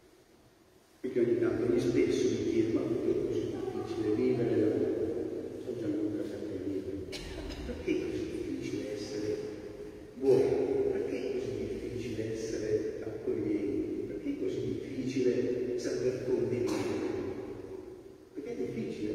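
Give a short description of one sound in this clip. An elderly man speaks steadily through a microphone in a large echoing hall.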